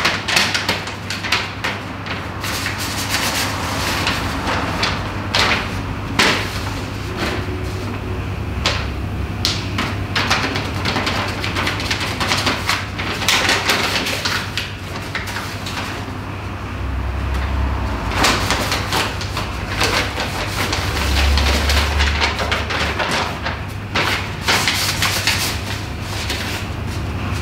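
A young man reads aloud with feeling, close by.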